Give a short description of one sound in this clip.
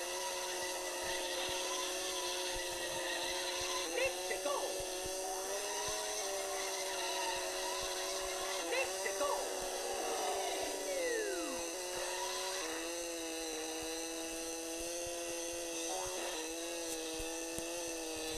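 A video game kart engine hums steadily, with small shifts in pitch.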